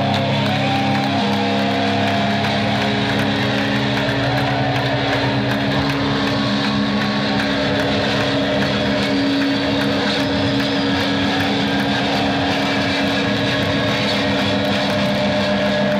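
A drummer crashes cymbals and pounds drums.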